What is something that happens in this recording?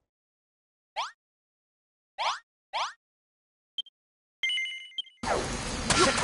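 Short rising chimes blip one after another.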